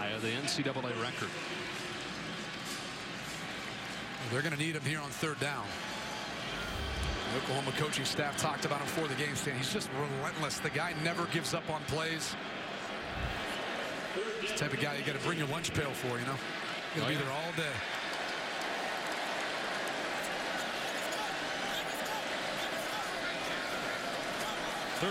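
A large crowd murmurs and cheers steadily in a big echoing stadium.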